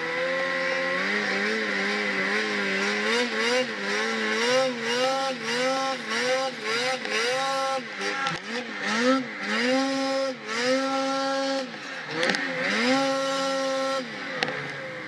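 A snowmobile engine whines close by, revving up and down.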